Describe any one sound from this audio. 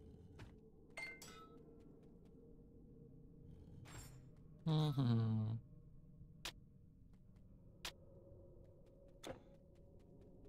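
Short electronic game sound effects chime and click now and then.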